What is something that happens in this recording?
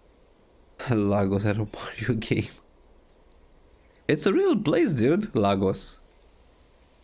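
A man speaks calmly and firmly, close up.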